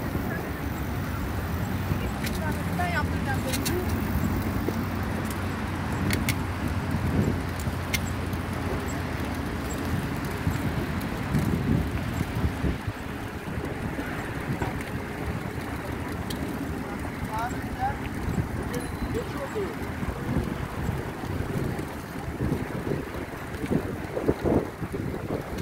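A bicycle's tyres hum on smooth pavement.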